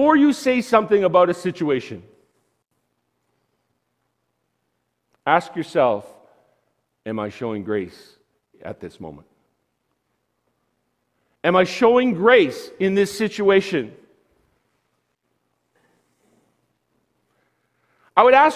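A man preaches with animation through a microphone in a large room, pausing between phrases.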